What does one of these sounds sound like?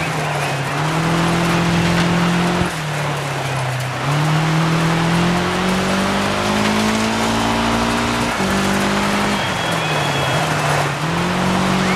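Tyres skid and crunch on loose dirt.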